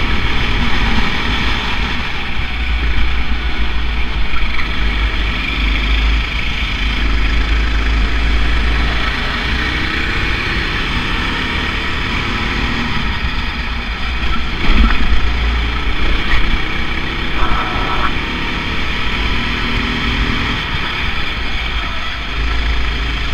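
A kart engine buzzes loudly and steadily up close, rising and falling in pitch.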